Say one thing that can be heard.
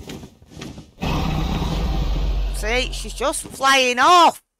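A dragon roars.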